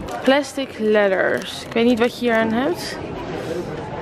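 A plastic package crinkles as it is handled.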